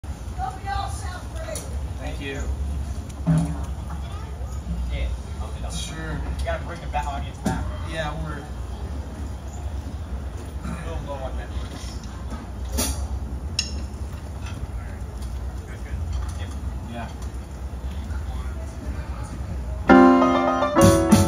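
Drums and cymbals tap out a light beat.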